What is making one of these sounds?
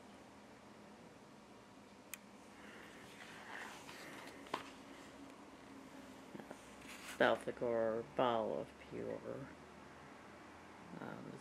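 Pages of a book turn with a soft papery rustle.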